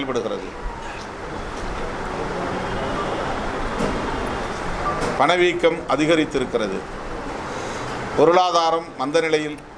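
A man speaks forcefully into microphones, close by.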